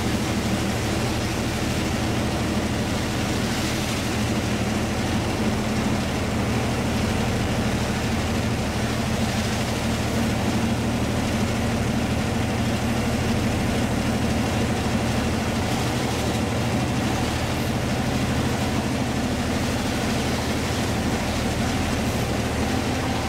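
A locomotive engine hums with a steady low drone.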